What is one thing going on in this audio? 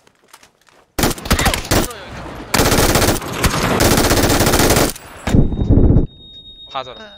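A rifle fires in rapid bursts.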